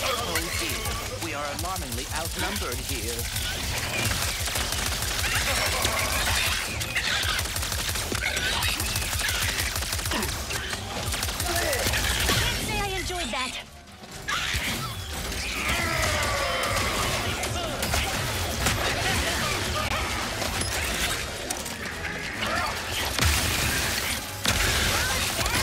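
Rapid gunfire blasts and zaps in a game battle.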